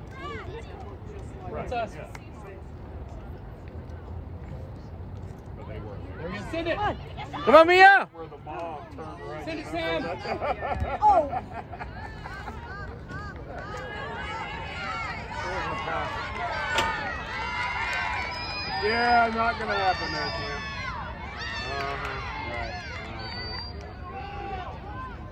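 A crowd of spectators shouts and cheers outdoors, nearby.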